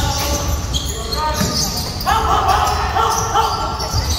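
A basketball bounces as a player dribbles.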